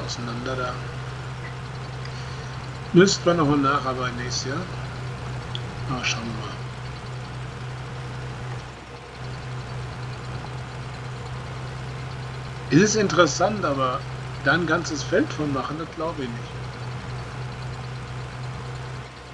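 A tractor engine drones under load.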